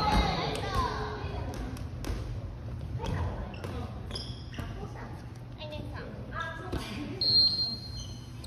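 Women's voices call out in a large echoing hall.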